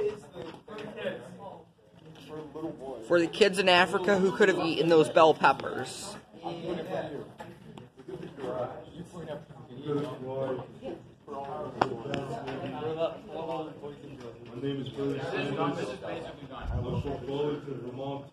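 A young man talks.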